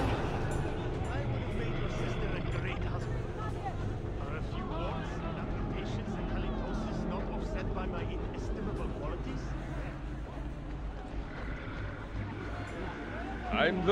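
A crowd of men and women murmurs and chatters nearby.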